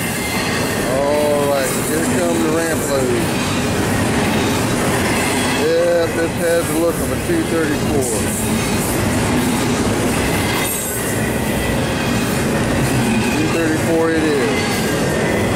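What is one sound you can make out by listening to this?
Train wheels squeal on the rails now and then.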